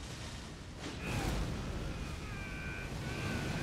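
A magical blast bursts with a loud roar.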